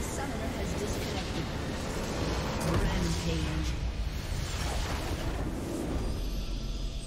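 Game spell effects crash and explode loudly.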